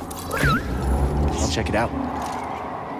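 A lightsaber hums and swooshes.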